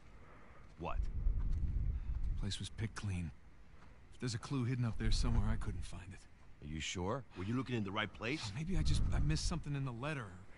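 A second man answers in a low, tired voice.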